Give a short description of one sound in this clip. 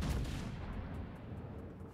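Heavy naval guns boom with a deep rumble.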